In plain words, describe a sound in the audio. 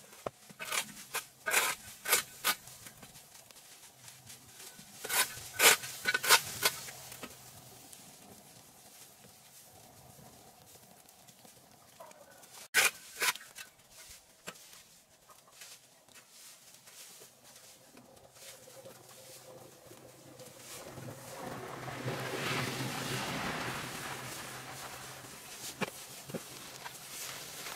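Rakes scrape and rustle through dry grass and leaves.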